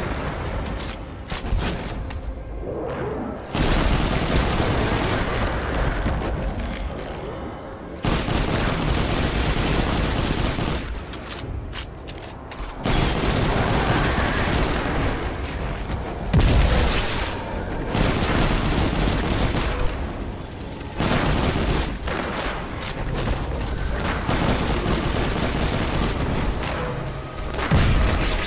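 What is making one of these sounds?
Video game guns fire in bursts.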